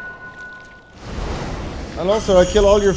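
Swords clash with a metallic ring.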